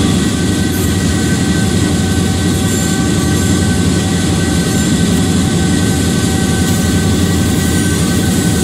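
Train wheels clatter along the rails.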